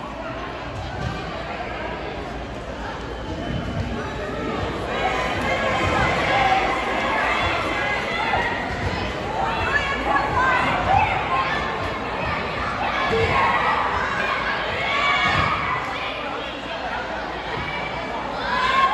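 A crowd of people chatters and cheers in a large echoing gym.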